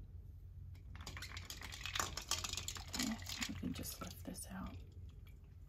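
Ice rattles and water splashes in a bowl.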